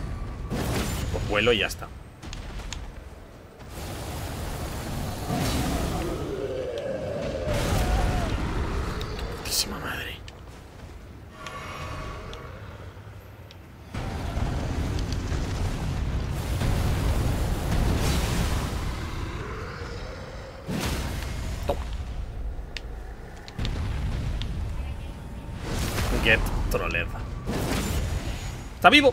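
A huge beast roars and growls.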